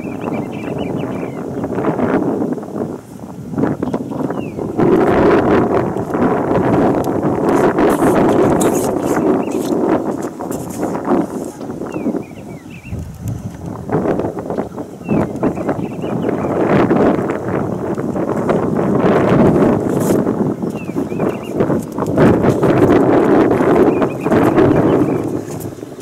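A steam locomotive chuffs loudly and rhythmically as it passes close by.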